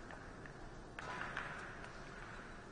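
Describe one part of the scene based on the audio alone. A billiard ball knocks into another ball and drops into a pocket.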